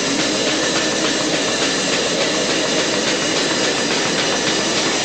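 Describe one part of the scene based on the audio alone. A drum kit pounds loudly in a fast rhythm.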